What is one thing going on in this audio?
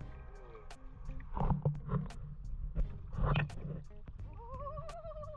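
Water splashes against a moving boat.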